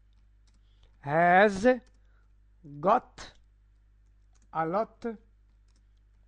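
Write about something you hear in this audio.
A man speaks slowly and clearly into a microphone, pausing between words.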